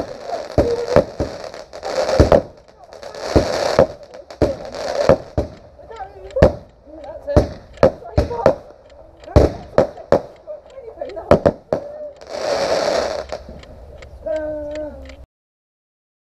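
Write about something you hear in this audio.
Fireworks bang and pop repeatedly in the distance.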